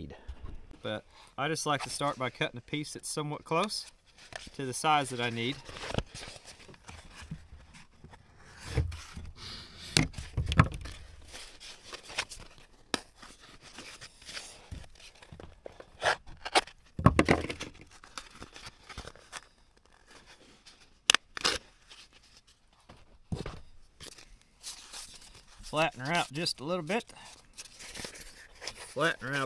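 Sandpaper rustles and crinkles in a man's hands.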